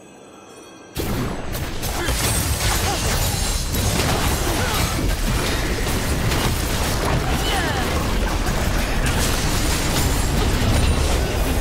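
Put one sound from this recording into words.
Game spell effects whoosh, crackle and thud in a busy battle.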